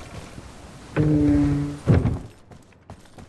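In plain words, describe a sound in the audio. A heavy wooden door creaks open loudly.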